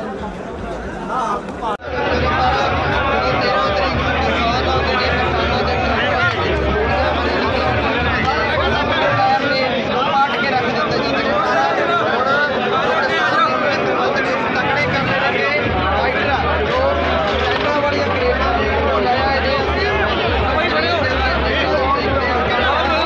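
A large crowd of men chatters and shouts outdoors.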